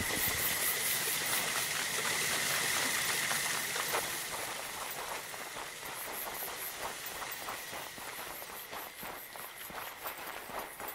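Footsteps patter softly through grass.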